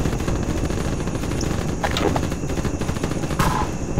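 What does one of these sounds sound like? A rifle is drawn with a short metallic clatter.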